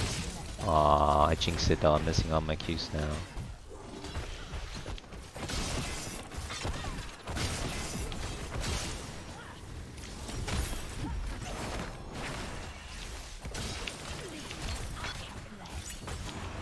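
Game spells and attacks crackle and boom in a busy battle.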